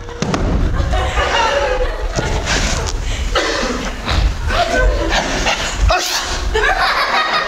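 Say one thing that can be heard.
A man speaks with strong feeling in an echoing hall.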